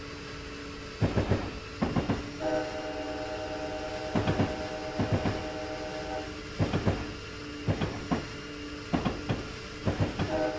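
Train wheels clack over rail joints in quick bursts.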